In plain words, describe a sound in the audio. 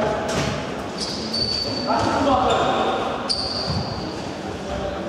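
Sports shoes squeak sharply on the hall floor.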